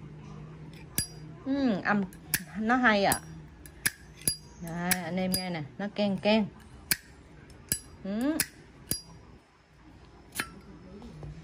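A metal lighter lid clicks open and snaps shut.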